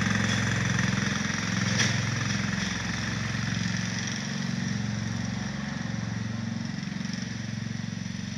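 A riding mower engine hums steadily and slowly fades as it drives away.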